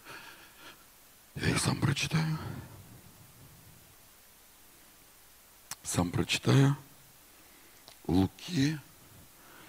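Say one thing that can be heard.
A man speaks with animation through a microphone in a large echoing hall, with pauses between phrases.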